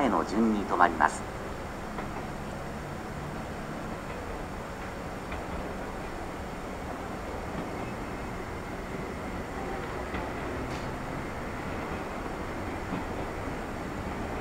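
A train rumbles along the tracks as it slowly approaches.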